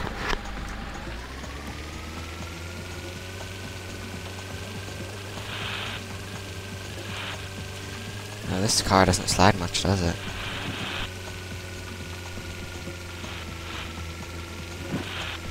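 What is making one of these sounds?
A toy-like engine hums steadily and rises in pitch as a small vehicle speeds up.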